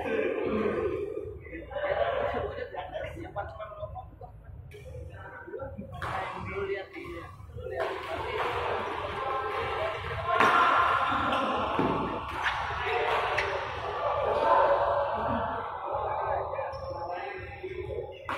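Players' shoes squeak on the court floor.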